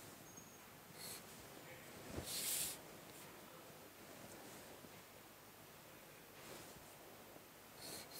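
A pencil scratches lines on paper.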